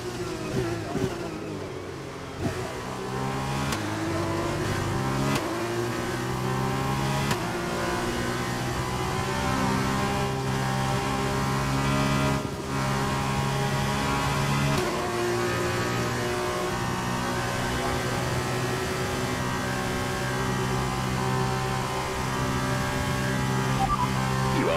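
A racing car engine roars and climbs in pitch through the gears.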